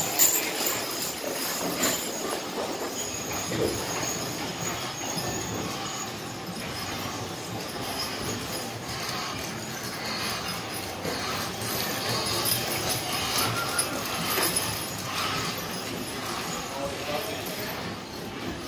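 Horses' hooves thud softly on sand as a team trots past.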